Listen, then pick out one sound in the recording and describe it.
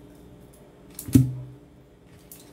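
Pliers are set down on a table with a sharp knock.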